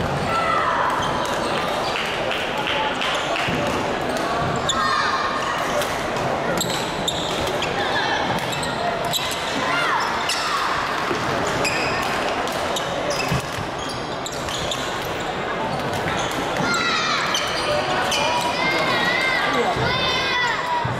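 Badminton rackets strike a shuttlecock with light pops.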